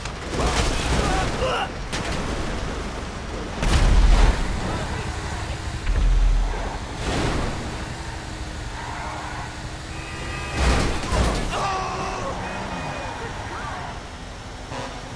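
A heavy truck engine rumbles and roars as it drives.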